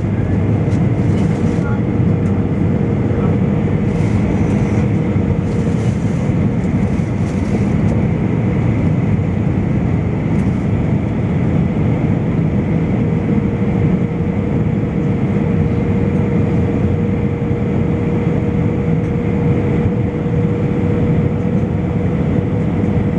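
Jet engines roar steadily inside an airplane cabin.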